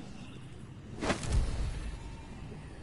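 A short whooshing burst sounds as a menu selection changes.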